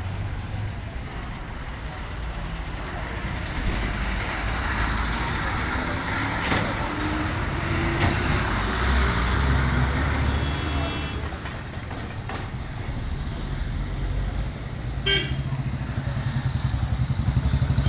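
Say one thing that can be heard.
Traffic rumbles past outdoors.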